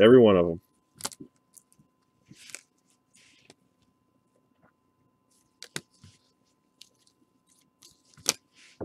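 Plastic card cases click and rustle close by.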